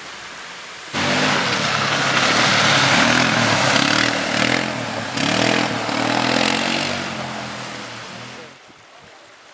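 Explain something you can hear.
A vehicle engine roars close by and drives away.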